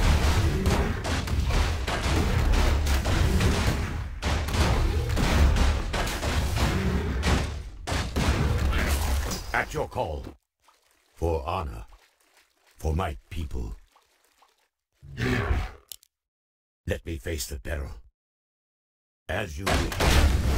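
Weapons clash and thud in a fight.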